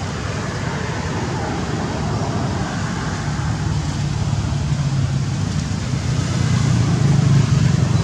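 Dry leaves rustle as a small monkey crawls over them.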